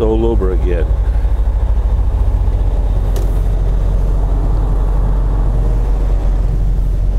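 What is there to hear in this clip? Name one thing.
A truck engine rumbles low and steady as the truck drives.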